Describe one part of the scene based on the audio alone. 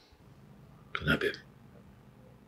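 A man speaks calmly into a phone.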